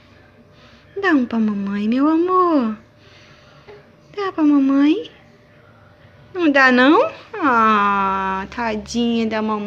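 A toddler vocalizes loudly close by, in long, sing-song cries.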